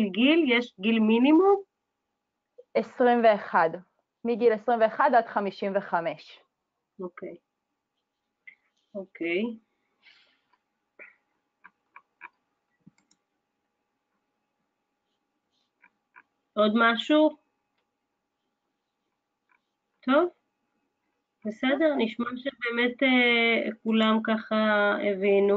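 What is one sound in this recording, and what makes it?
A young woman talks calmly and close up, with pauses.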